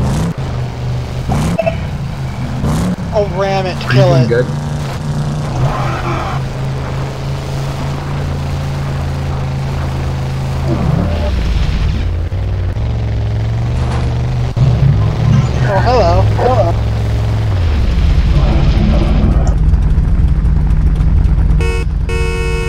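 A car engine hums steadily and shifts pitch as the car speeds up and slows down.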